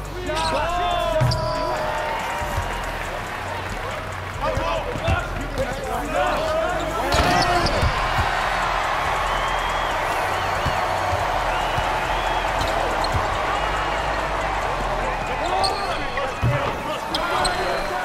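A crowd roars steadily in a large echoing arena.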